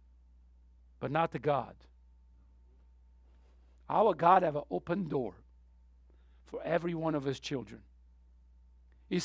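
A middle-aged man speaks calmly through a microphone, pausing between phrases.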